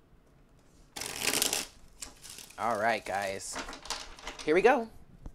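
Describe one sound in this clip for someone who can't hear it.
Playing cards riffle and shuffle.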